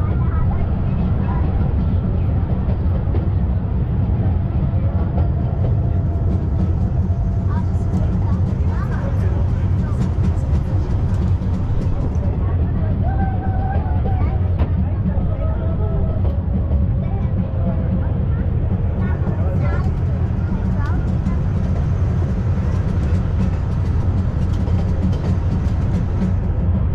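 Wind rushes past an open carriage.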